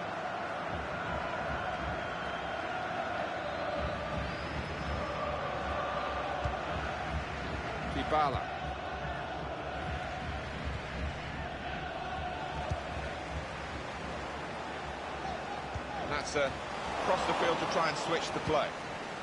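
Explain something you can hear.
A large crowd roars and murmurs steadily in a stadium.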